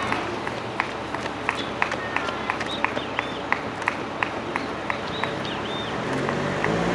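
Running shoes slap steadily on the pavement close by.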